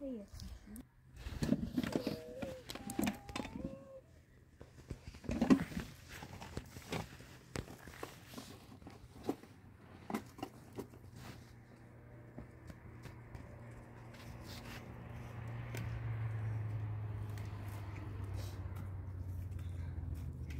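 Tent cloth rustles and flaps as a woman handles it.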